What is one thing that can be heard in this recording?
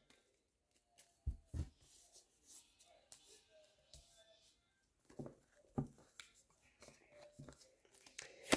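Cards slide and tap softly on a table.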